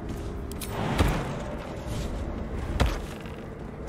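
A figure lands with a heavy thud on wooden planks.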